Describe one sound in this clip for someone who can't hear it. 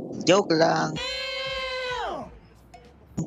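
A man exclaims.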